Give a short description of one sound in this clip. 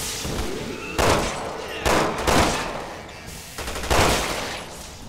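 Gunshots ring out loudly, one after another.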